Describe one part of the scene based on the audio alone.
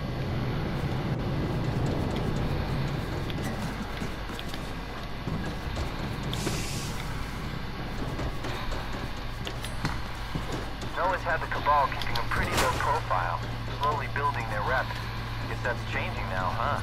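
Footsteps run quickly across a metal walkway.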